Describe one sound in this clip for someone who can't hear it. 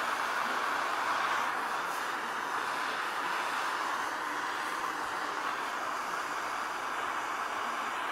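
A blade scrapes across a hard surface.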